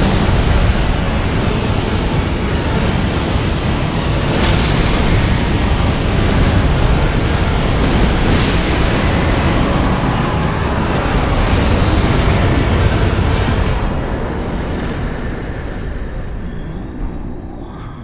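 A deep fiery roar rumbles loudly and steadily, then fades away.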